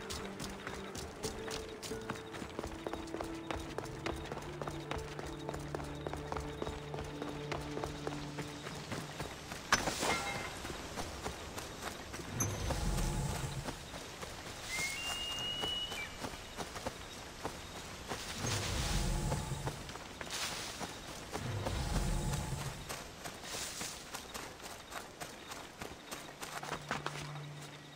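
Footsteps run quickly over stone and earth.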